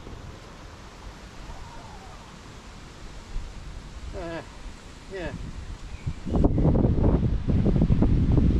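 Wind rumbles against the microphone outdoors, growing stronger toward the end.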